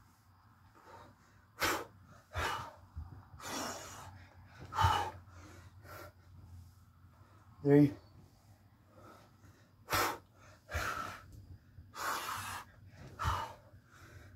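A man breathes hard between exercise reps.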